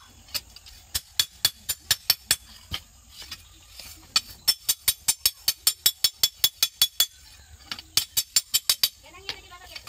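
A hammer strikes hot metal in quick, ringing blows.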